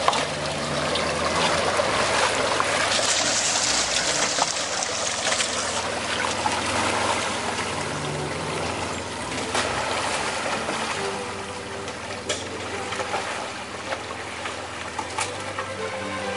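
Water splashes and sloshes under tyres.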